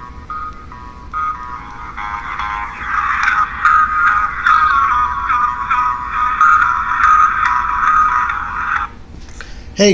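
A television plays a tune in the room.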